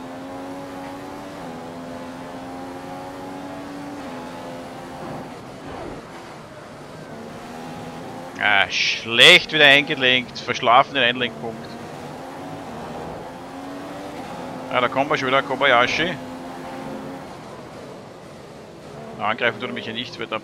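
A racing car engine whines at high revs, rising and dropping with gear changes.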